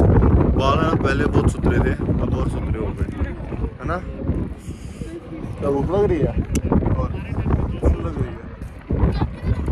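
A young man talks casually close to the microphone.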